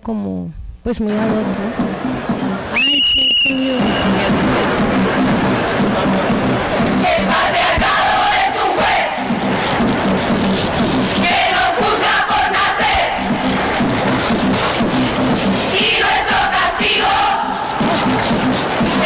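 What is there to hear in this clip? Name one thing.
Music with chanting plays through loudspeakers.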